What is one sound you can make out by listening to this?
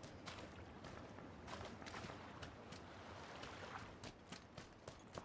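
Water splashes softly as someone wades through it.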